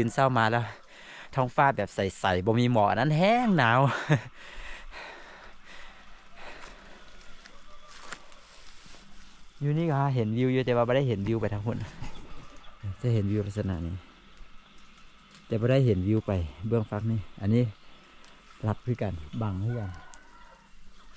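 A young man talks calmly and close by, pausing often.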